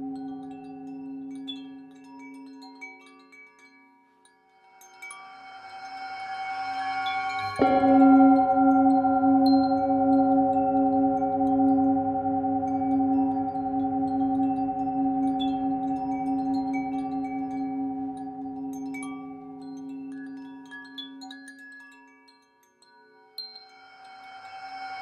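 A singing bowl rings with a long, humming tone.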